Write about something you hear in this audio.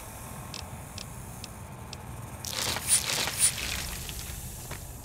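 A small electronic device beeps and chirps.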